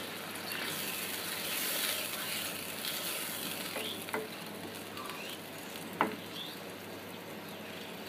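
A wooden spatula stirs and scrapes against a pan.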